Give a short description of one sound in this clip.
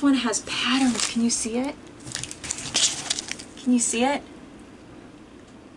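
Paper rustles in a woman's hands.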